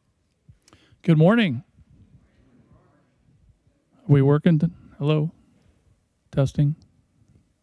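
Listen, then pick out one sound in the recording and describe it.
A man speaks into a microphone in an echoing room.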